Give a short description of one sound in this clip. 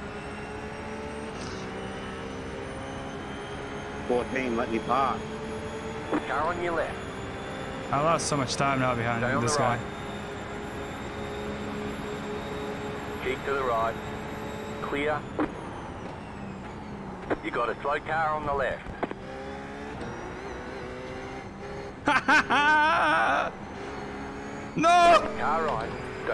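A race car engine drones steadily.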